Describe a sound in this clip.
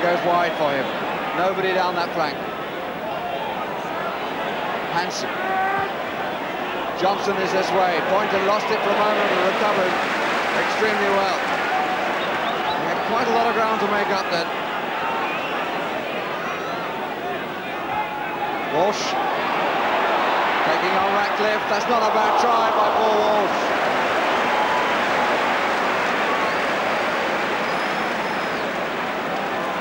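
A large crowd chants and sings in an open-air stadium.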